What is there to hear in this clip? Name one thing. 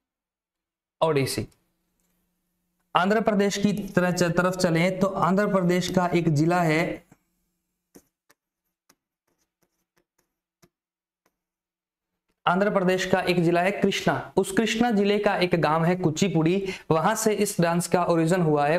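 A man speaks clearly into a close microphone, explaining with animation.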